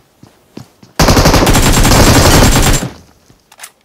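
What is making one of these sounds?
A loud burst of rapid gunfire roars close by.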